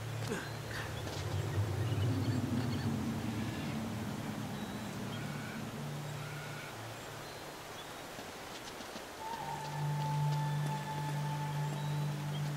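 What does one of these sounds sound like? Footsteps fall on rocky ground.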